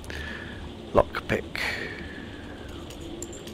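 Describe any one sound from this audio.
A lock pick clicks and scrapes inside a door lock.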